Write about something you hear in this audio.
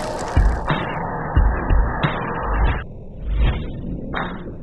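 Party poppers burst with celebratory pops.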